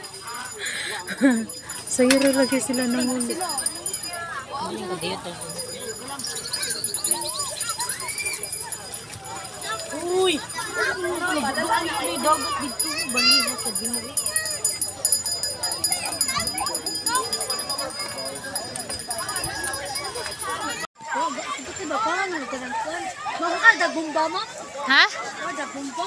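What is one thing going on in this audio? Young women and children chatter close by, outdoors.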